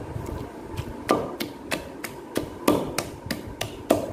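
A wooden pestle pounds in a clay mortar with rhythmic thuds.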